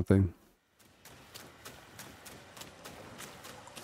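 Footsteps tread softly on a dirt path.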